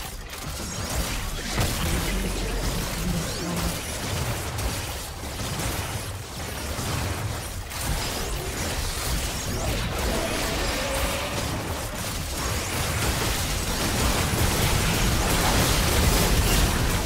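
Magic blasts crackle and boom as fantasy fighters clash in a battle.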